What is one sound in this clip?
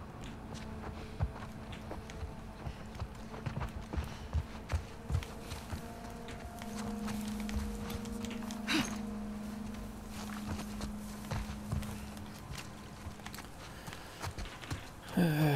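Footsteps crunch through tall grass and over a floor.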